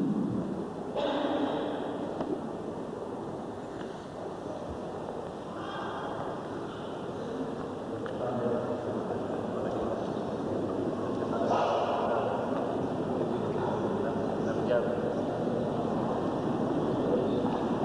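Men murmur and talk quietly nearby.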